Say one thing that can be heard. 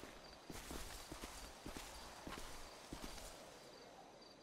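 Footsteps crunch quickly through dry undergrowth.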